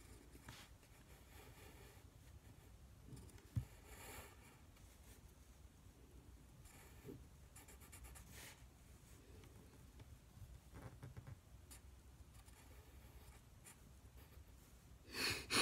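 A pencil scratches and rasps softly across paper.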